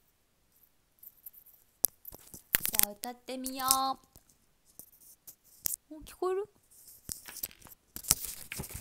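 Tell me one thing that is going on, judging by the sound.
Rustling and handling noises sound close to a microphone.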